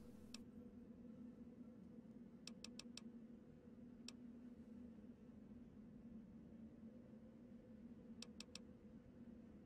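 Soft menu clicks tick as items are scrolled through.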